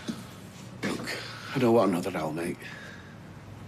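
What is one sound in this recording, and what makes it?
An older man talks nearby.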